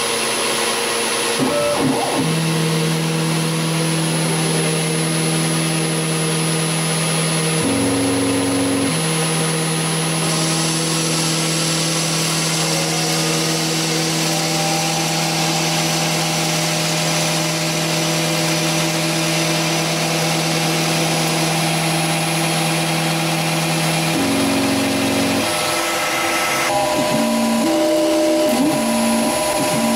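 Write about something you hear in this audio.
A cutting tool scrapes and hisses against spinning metal.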